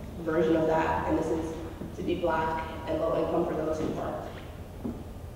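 A young woman speaks calmly into a microphone, heard through a loudspeaker in a large room.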